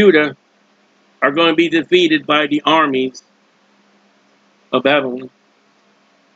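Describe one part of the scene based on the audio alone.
A man speaks calmly and close to a microphone, in short bursts.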